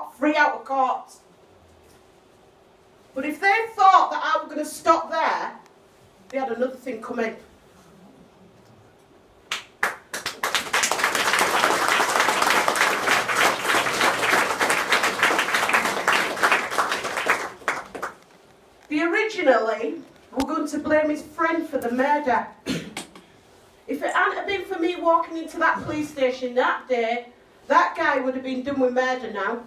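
A woman speaks with passion into a microphone, heard through a loudspeaker in a room.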